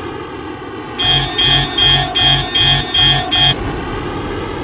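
A warning alarm beeps rapidly in quick bursts.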